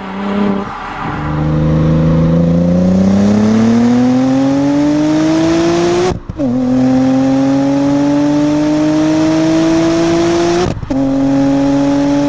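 A car exhaust drones loudly, rising in pitch as the car accelerates, with brief pauses at gear changes.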